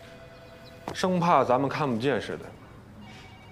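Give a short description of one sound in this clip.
Another young man answers in a firm voice.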